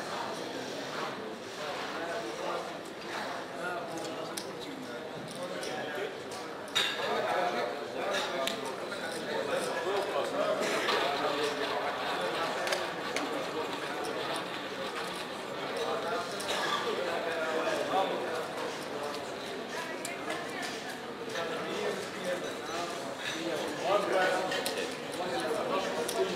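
Gaming chips click and clatter as they are stacked and pushed across a table.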